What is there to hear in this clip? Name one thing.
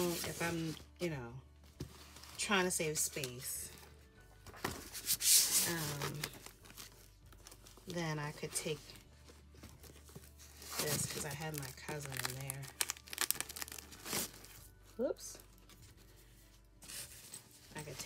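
Plastic binders rustle and scrape as they are handled.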